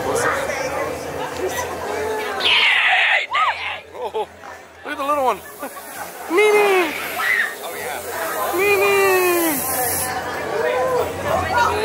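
Young people chatter and shout nearby.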